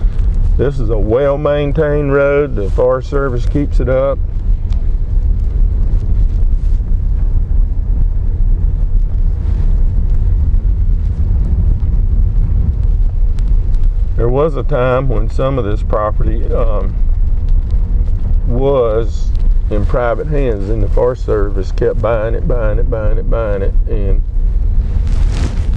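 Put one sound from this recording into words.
Tyres rumble and crunch over a rough dirt road.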